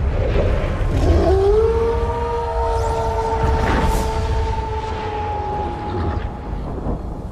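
A wolf howls long and loud.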